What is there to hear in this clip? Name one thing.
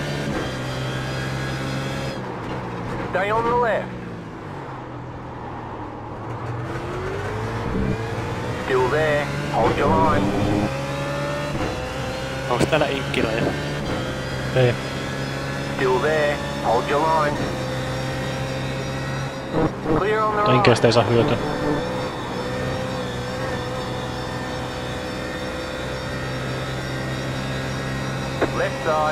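A race car engine drones steadily, its pitch rising and falling as the car speeds up and slows down.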